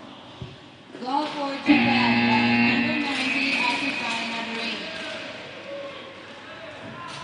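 A crowd cheers and shouts loudly in an echoing hall.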